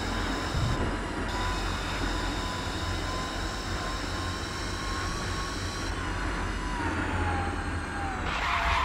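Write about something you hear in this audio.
Tyres rush over asphalt.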